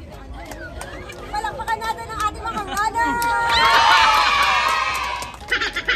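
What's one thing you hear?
A young woman claps her hands.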